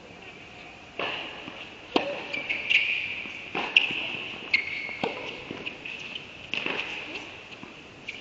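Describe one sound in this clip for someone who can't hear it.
Tennis shoes squeak on the court.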